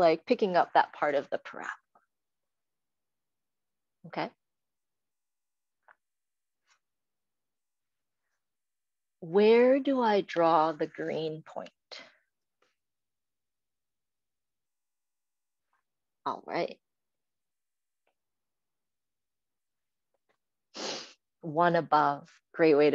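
A woman speaks calmly through a microphone, in short bursts with pauses.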